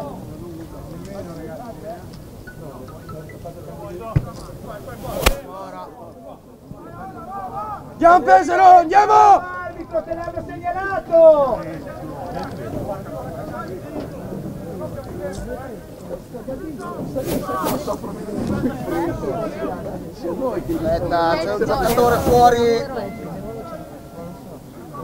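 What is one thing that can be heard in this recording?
Men shout and call out loudly across an open outdoor field.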